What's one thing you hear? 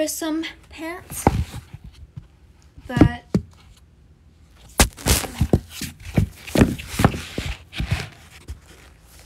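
Rustling and bumping sounds of a phone being handled close up.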